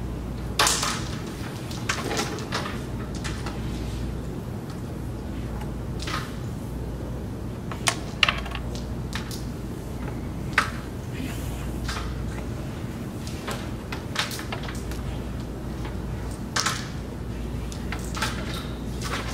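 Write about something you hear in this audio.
Wooden carrom pieces click sharply against each other and the board rim.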